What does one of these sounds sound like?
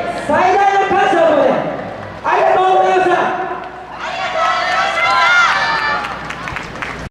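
A group of young dancers chant together loudly outdoors.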